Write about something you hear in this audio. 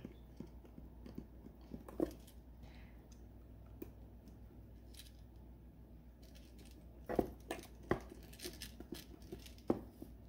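Hands handle a stiff plastic case with light taps and clicks.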